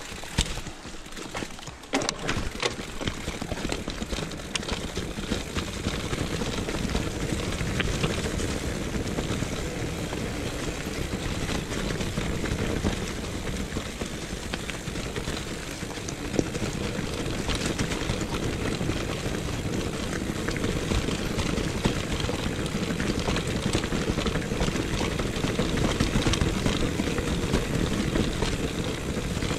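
A bicycle rattles over bumps with sharp knocks.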